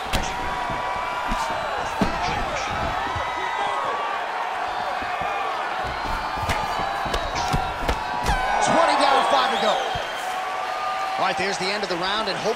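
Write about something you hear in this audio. A crowd cheers and whistles in a large arena.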